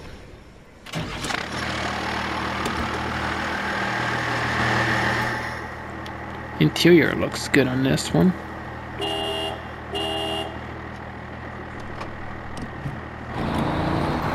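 A diesel truck engine runs with a steady low rumble.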